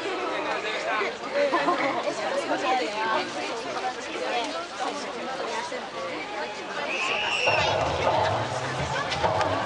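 A large outdoor crowd of men and women chatters.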